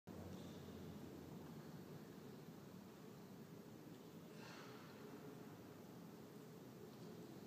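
A saxophone plays in a large echoing hall.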